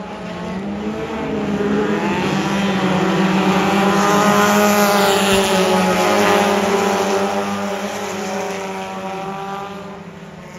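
Race car engines swell loudly as cars pass close by, then fade.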